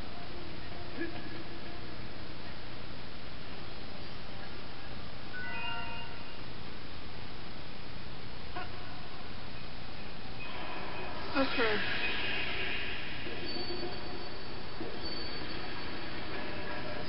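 Game music plays through a television speaker.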